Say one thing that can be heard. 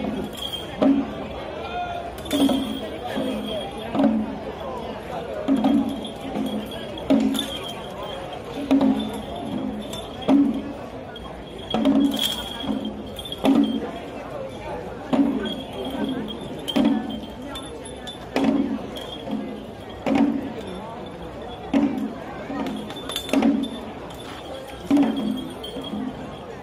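A crowd murmurs nearby outdoors.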